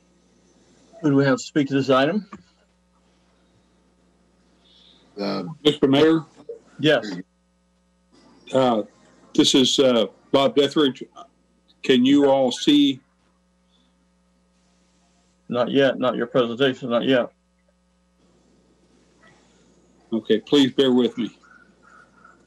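Several adults speak in turn over an online call, in short exchanges.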